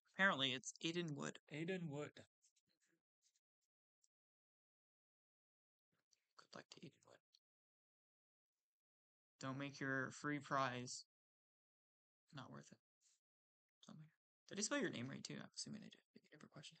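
A young man talks with animation through a microphone, in bursts with pauses.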